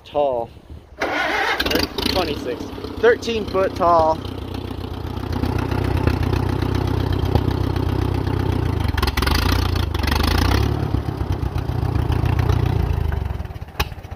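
A tractor engine starts and runs with a low, steady rumble.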